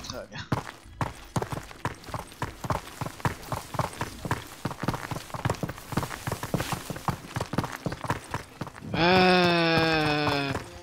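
Footsteps crunch steadily on dry dirt.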